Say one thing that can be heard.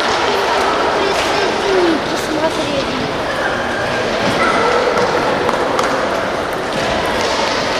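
A ping pong ball clicks against paddles and a table.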